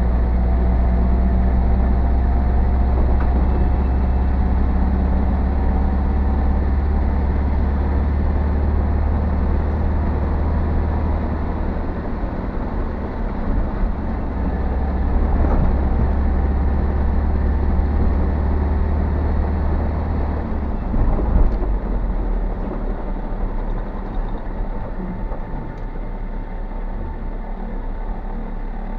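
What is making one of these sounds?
A car engine drones steadily from inside the car, easing off near the end.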